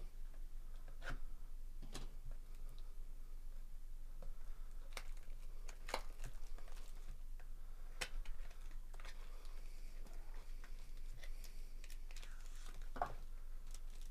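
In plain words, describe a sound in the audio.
A cardboard box is torn open with sharp little snaps.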